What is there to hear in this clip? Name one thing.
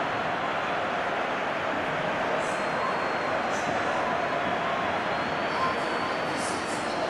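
A large stadium crowd roars and cheers steadily.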